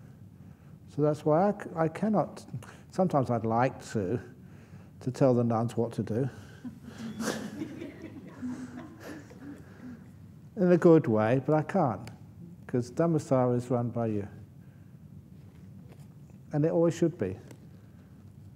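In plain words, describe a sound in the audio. An older man speaks calmly into a microphone, in bursts with pauses.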